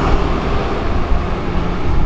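A bus rumbles past.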